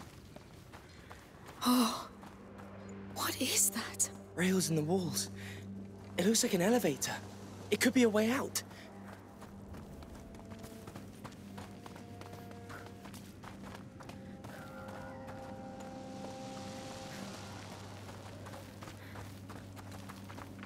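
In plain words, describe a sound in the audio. Footsteps crunch on gravel and stone.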